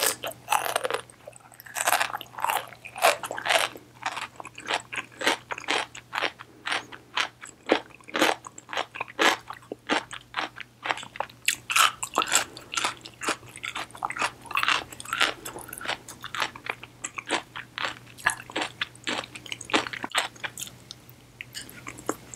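A young woman chews wetly with smacking mouth sounds close to a microphone.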